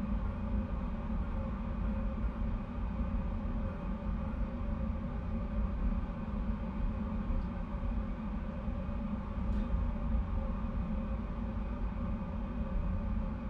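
A jet engine roars steadily and low.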